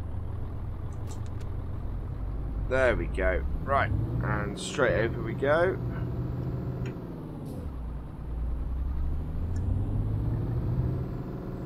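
A truck engine rumbles low and steady, easing off briefly before picking up again.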